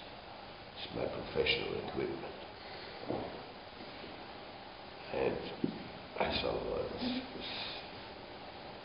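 A middle-aged man speaks calmly close by, in short phrases.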